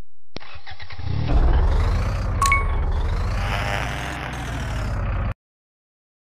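A truck engine rumbles and revs.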